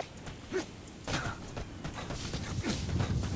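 Footsteps run quickly over dry grass and gravel.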